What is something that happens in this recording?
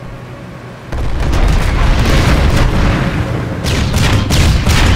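Explosions boom and crackle in rapid bursts.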